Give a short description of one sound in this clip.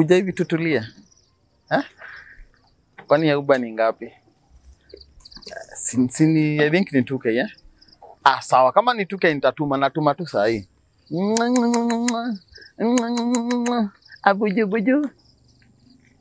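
A young man talks on a phone with animation, close by.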